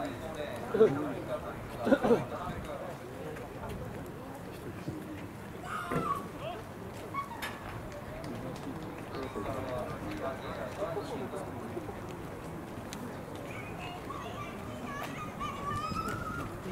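A crowd of spectators calls out and cheers from a distance outdoors.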